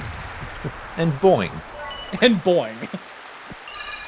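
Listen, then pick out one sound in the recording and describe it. A cartoon springy sound effect boings as a game character jumps.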